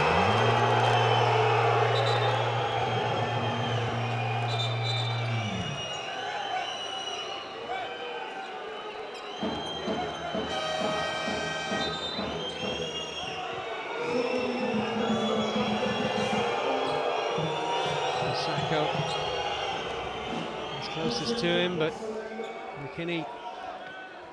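A large crowd murmurs and cheers in an echoing arena.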